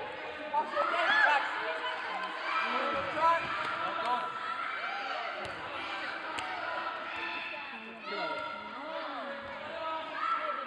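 Children shout and call out excitedly in a large echoing hall.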